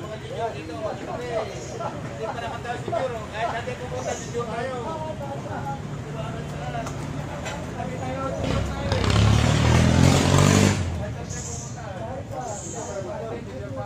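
Several men talk casually nearby, their voices overlapping.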